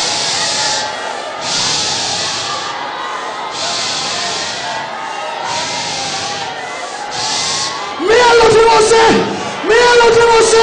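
A large crowd prays aloud all at once in a big echoing hall.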